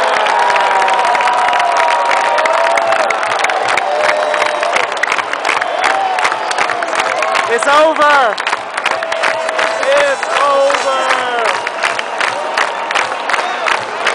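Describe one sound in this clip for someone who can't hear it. People close by clap their hands rapidly.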